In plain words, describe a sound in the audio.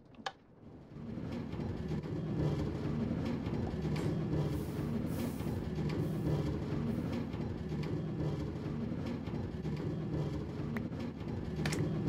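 A minecart rumbles steadily along rails.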